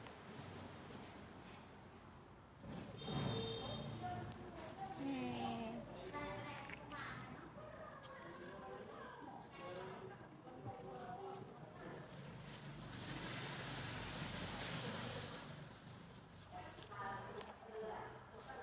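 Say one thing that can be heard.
Fingers tear open a fruit's tough rind with a soft crackle.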